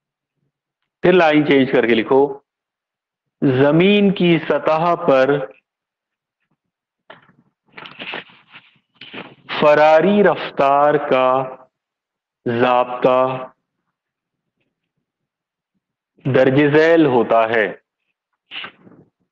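A middle-aged man speaks calmly and clearly, close by, in short bursts with pauses.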